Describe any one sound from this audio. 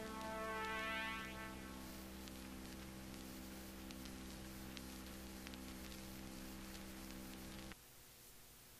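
An acoustic guitar plays sustained chords that ring out and stop.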